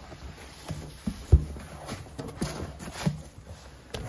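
Cardboard box flaps rustle and scrape as they are opened.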